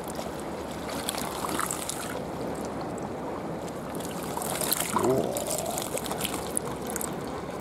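A hand net splashes through shallow water.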